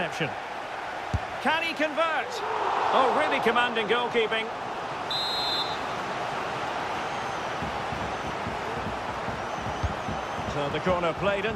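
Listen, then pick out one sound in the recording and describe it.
A stadium crowd roars and cheers steadily.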